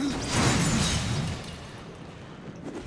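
Wooden objects smash and crash.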